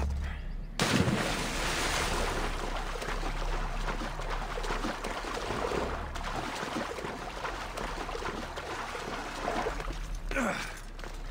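Water splashes steadily as a person swims.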